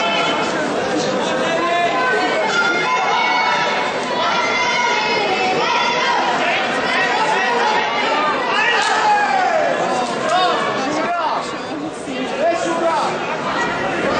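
A man referee calls out commands.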